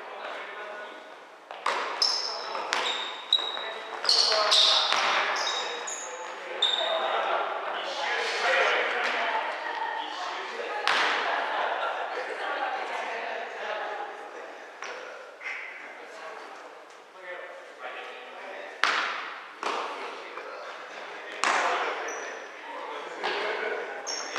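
Young men shout and call out to each other in an echoing hall.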